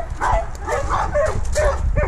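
A dog's paws crunch on gravel.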